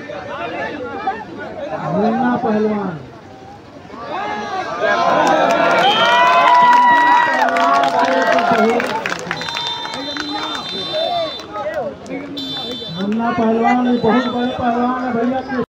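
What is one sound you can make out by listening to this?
Men in a crowd talk and call out nearby.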